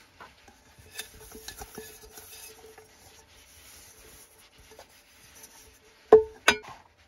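A cloth rubs and wipes inside a metal pot.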